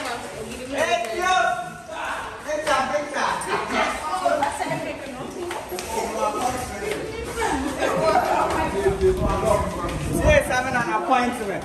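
Footsteps shuffle down stairs.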